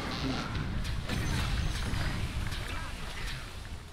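Spell effects crackle and boom in a fight.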